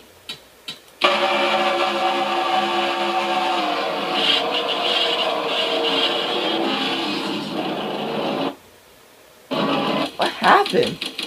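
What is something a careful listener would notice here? Race car engines roar loudly at high speed.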